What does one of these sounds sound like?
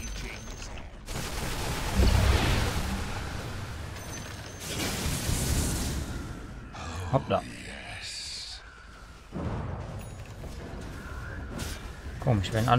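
Game battle effects crackle and boom.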